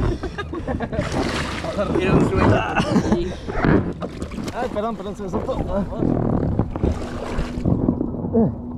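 Water splashes and churns against the side of an inflatable boat.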